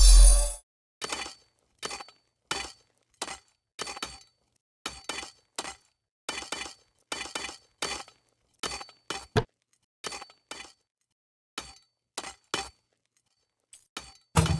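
Pickaxes strike rock in short, repeated clinks.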